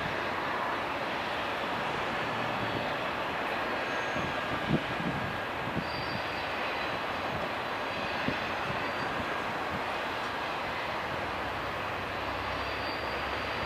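A car drives by close.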